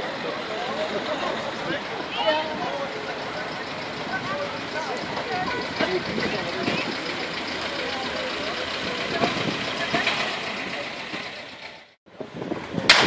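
A tractor engine chugs as it drives slowly along a street.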